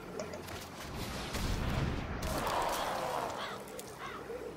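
A magical spell effect whooshes and crackles.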